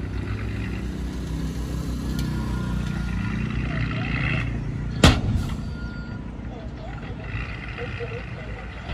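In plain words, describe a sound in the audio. A truck engine rumbles steadily nearby.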